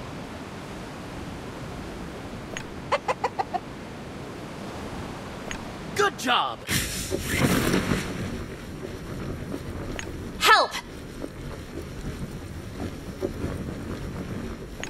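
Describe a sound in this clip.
Wind rushes steadily during a fall.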